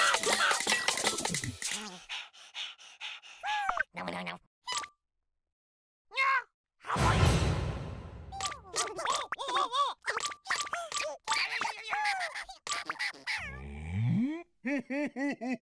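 Toy balls bounce with quick, springy cartoon boings.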